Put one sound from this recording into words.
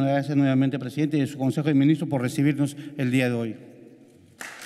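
A man speaks into a microphone with animation, echoing slightly in a large room.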